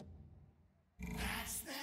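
A loud burst of game sound begins as the countdown ends.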